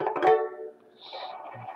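A stringed instrument is plucked and rings briefly.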